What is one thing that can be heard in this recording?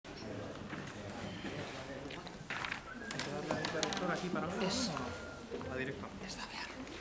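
Chairs scrape and bump as people sit down.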